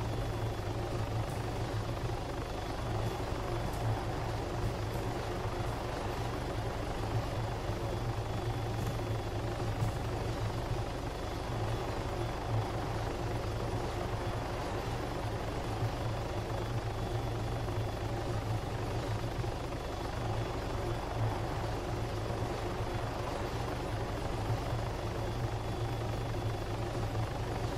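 A helicopter's rotor thumps and its engine roars steadily.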